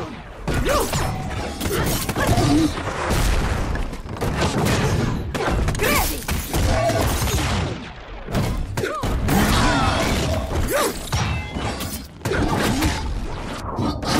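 Electric blasts crackle and zap.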